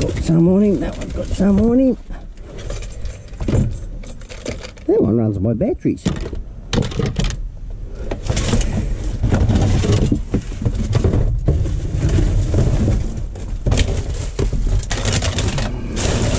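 Cardboard and plastic rustle and crackle as hands rummage through rubbish.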